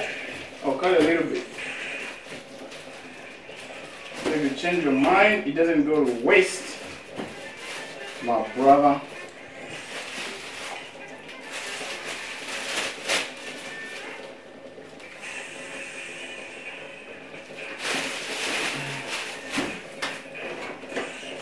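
Dishes clink and clatter at a sink.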